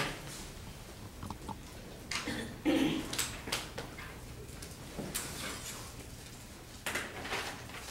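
A marker taps and squeaks against a whiteboard.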